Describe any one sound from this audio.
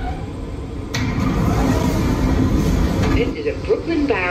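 Train doors slide open with a hiss.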